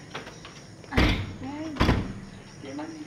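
A door thuds twice.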